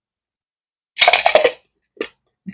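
A plastic cap rattles and clicks as a hand turns it.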